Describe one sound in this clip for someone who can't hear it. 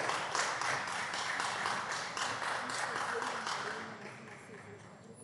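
Several people clap their hands in a large echoing hall, and the applause fades away.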